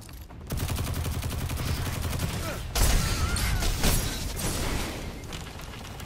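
Video game gunfire rattles.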